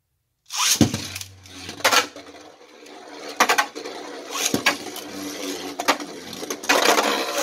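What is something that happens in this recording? Spinning tops clash against each other with sharp clacks.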